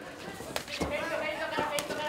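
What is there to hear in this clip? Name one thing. Gloved punches thud against a body.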